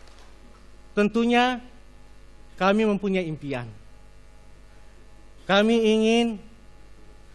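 A man speaks slowly and with emphasis through a microphone in a large hall.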